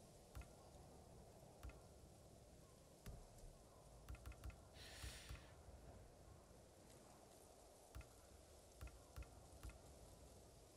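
Short soft clicks sound as menu choices change.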